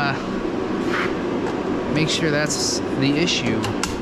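A metal tool drawer slides open with a rattle.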